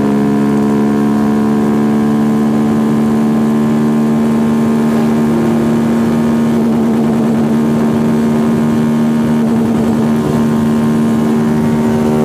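Wind rushes past at speed.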